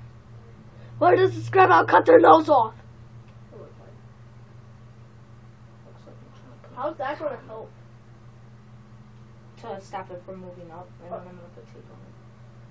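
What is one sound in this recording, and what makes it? A boy talks up close in short bursts.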